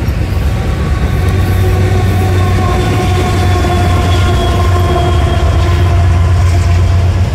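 Diesel locomotive engines drone loudly as they pass close by.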